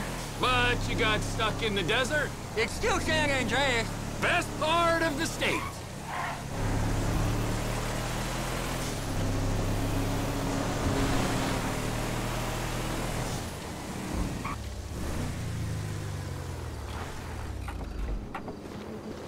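A truck engine hums steadily as it drives along a road.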